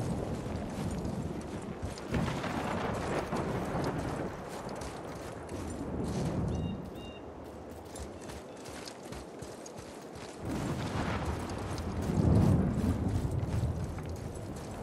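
Wind blows in strong gusts.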